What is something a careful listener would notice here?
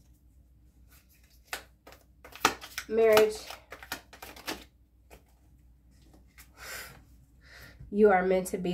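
Playing cards shuffle and riffle.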